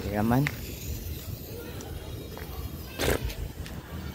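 Sparks from a firework fizz and crackle nearby.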